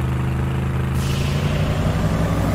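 A rocket booster roars with a rushing hiss.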